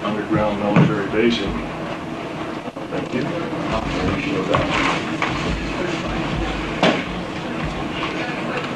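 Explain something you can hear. A middle-aged man speaks to a room in a slightly echoing space.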